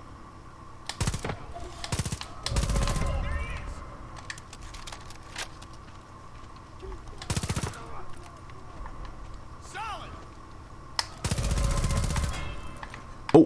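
A rifle fires several loud, sharp shots.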